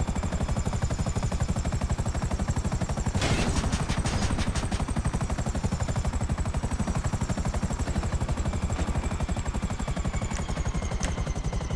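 A helicopter engine whines.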